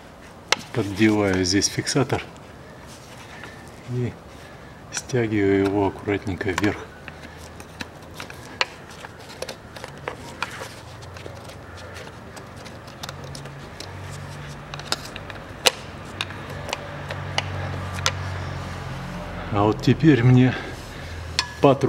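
A metal tool taps and clicks against engine parts.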